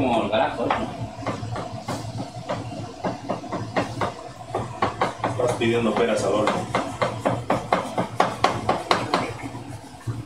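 A knife chops quickly on a wooden cutting board.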